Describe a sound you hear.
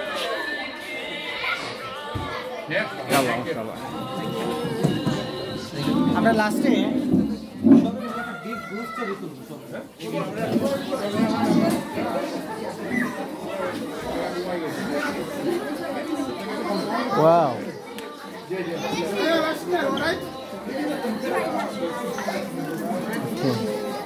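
Many men, women and children talk over one another in a large, echoing hall.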